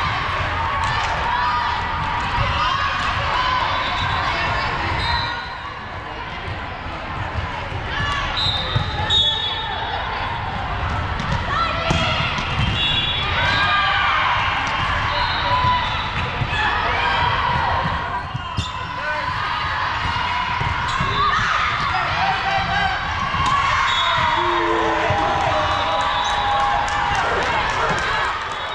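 A crowd of players and spectators chatters and calls out in a large echoing hall.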